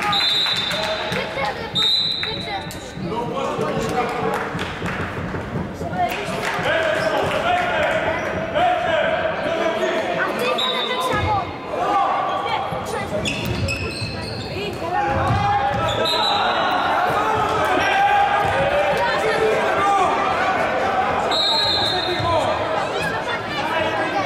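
Sounds echo through a large indoor hall.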